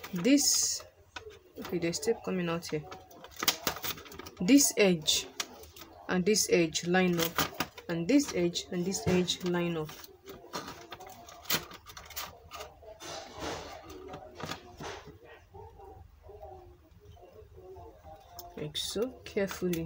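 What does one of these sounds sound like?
A plastic sheet crinkles and rustles as it is handled.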